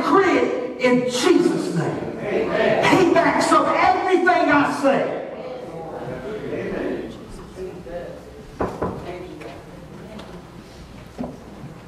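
An elderly man preaches loudly and with fervour into a microphone in a reverberant hall.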